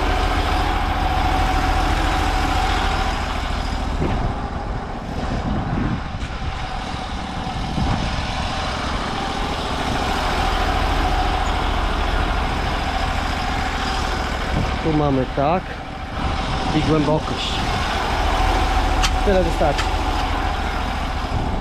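A pressure washer engine drones steadily.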